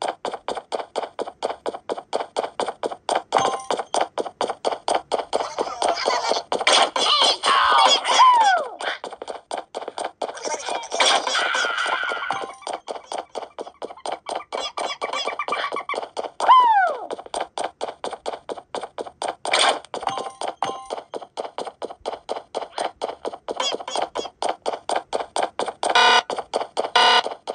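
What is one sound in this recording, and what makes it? Fast, bouncy game music plays from a tablet speaker.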